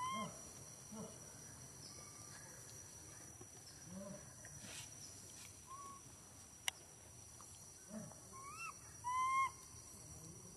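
A baby monkey squeaks in short, high cries.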